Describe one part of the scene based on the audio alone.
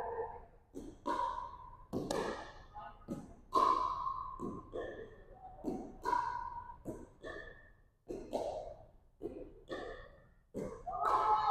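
Paddles hit a plastic ball with sharp pops.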